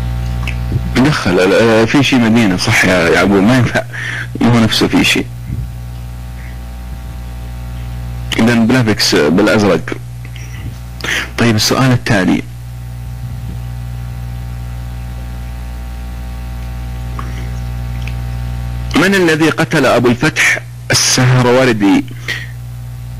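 A man speaks into a microphone in short bursts.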